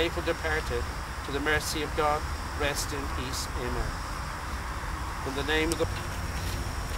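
An elderly man speaks calmly and solemnly nearby, outdoors.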